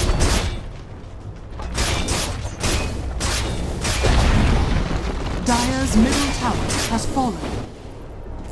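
Spell and combat sound effects burst and whoosh in quick succession.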